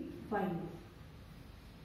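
A woman speaks briefly and calmly nearby.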